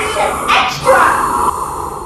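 A girl sings into a microphone.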